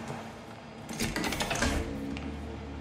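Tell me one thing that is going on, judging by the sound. A metal valve creaks as it is turned.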